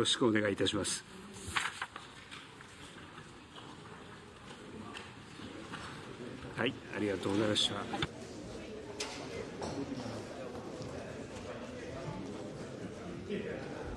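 A room full of people murmurs and chatters in the background.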